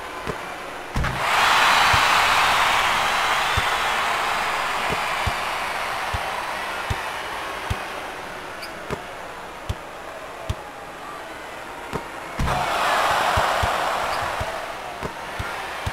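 A crowd cheers and roars loudly, then fades.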